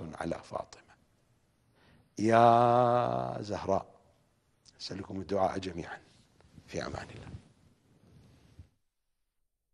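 A middle-aged man speaks with animation into a microphone, his voice rising into a long sung cry.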